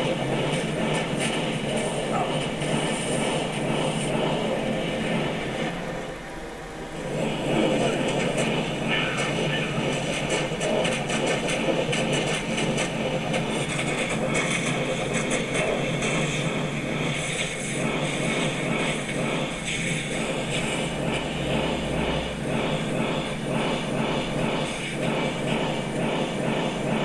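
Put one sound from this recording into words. Fire spells roar and crackle in rapid bursts.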